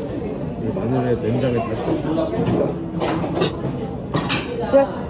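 A young woman hums with delight close by.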